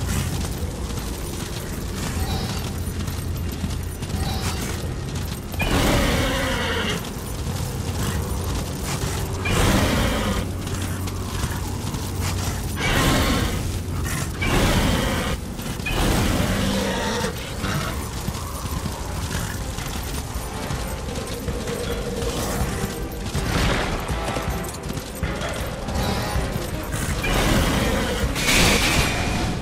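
Hooves gallop steadily over the ground.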